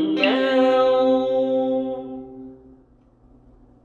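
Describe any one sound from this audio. A man sings a long, held note that fades away.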